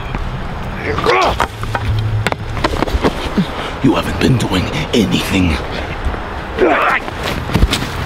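A young man shouts with strain, close by.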